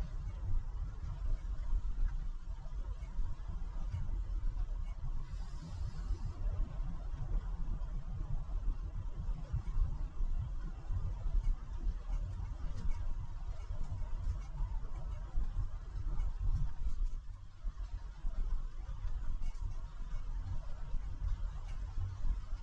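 A car drives along a wet road with a low, steady rumble.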